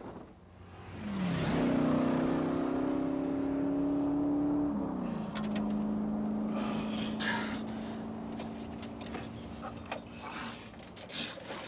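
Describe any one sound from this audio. A car engine roars as a car speeds along a road.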